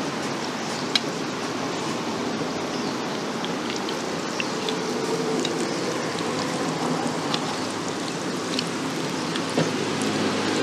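Metal tongs click and tap against a pan.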